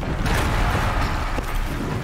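A large machine creature growls and roars nearby.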